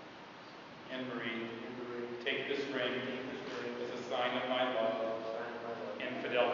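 An elderly man speaks calmly, echoing in a large hall.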